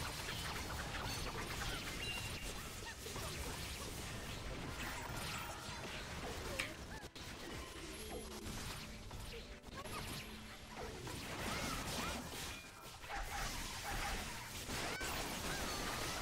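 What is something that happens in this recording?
Lightning bolts strike with sharp zaps.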